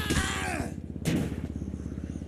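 A body lands on the ground with a heavy thud.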